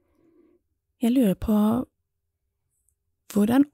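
A young woman speaks expressively up close.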